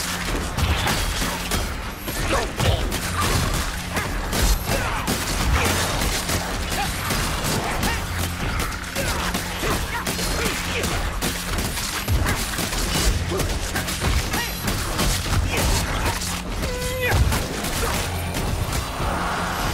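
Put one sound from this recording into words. A heavy weapon repeatedly hacks and thuds into flesh.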